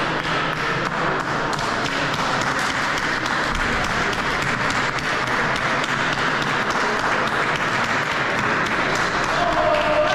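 Players slap hands as they shake hands in a line.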